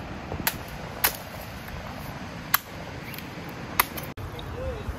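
A machete chops into a coconut with sharp knocks.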